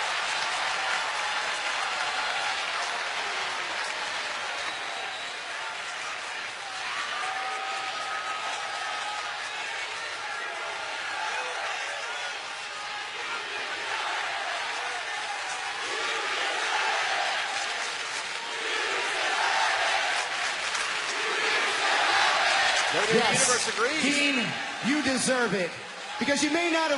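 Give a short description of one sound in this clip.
A man speaks with animation into a microphone over loudspeakers in a large echoing arena.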